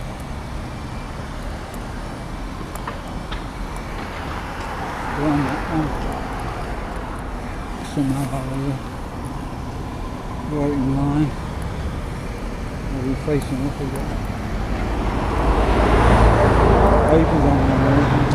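A car engine idles nearby.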